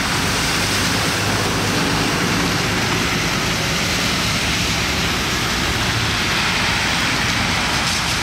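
Water splashes up under a bus's wheels.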